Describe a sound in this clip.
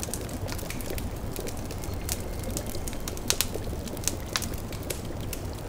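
A cauldron bubbles softly.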